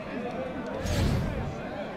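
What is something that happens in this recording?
A large crowd chatters and calls out.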